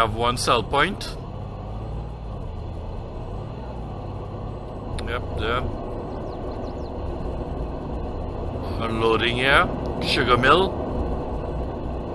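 A pickup truck engine hums steadily as it drives slowly.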